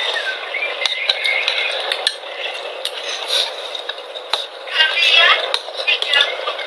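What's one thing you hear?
A spoon clinks against a bowl.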